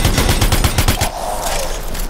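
A fiery explosion bursts and crackles.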